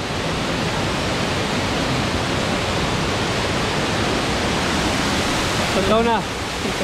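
Water rushes and splashes over rocks nearby.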